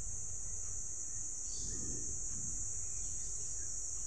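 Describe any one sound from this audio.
Leaves rustle as a hand brushes through a plant.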